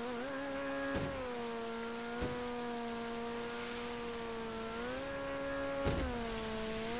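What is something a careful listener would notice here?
A boat hull slaps against waves with sudden thumps.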